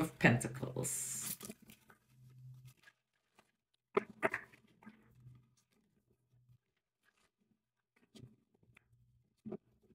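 Playing cards riffle and shuffle between a woman's hands.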